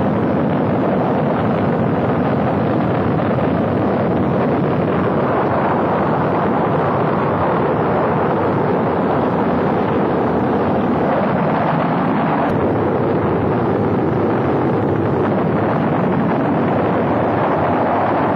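A Saturn V rocket's engines roar deeply as it lifts off.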